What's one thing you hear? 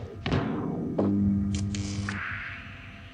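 A machine hums with a low drone.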